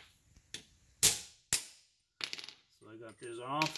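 A hammer taps on metal.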